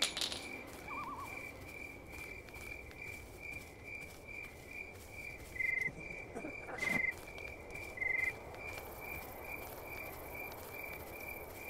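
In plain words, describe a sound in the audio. Footsteps crunch slowly over gravel outdoors.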